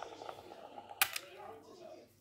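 A snap fastener clicks open.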